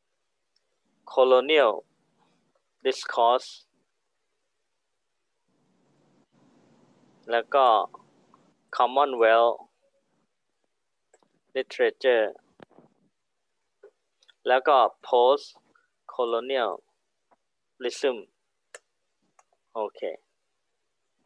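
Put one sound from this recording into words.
A man speaks calmly in short, broken phrases through an online call.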